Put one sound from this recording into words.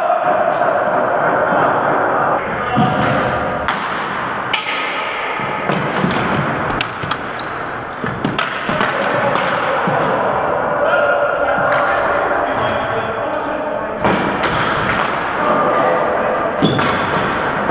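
Sticks clack against a ball and the floor in a large echoing hall.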